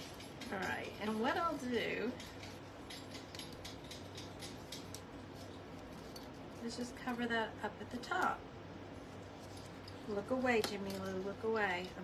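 A middle-aged woman talks calmly and close by.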